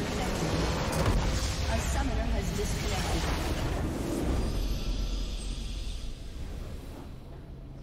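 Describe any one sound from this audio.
A huge structure explodes with a deep rumbling boom.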